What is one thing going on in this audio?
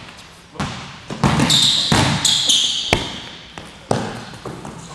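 Basketballs bounce hard on a wooden floor in an echoing gym.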